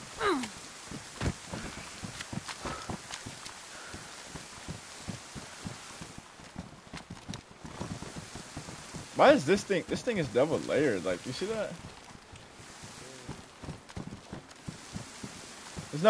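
Footsteps tread quickly over grass and hard ground.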